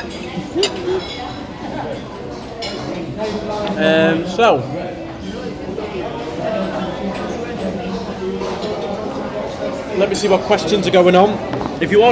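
Diners chatter in a busy room.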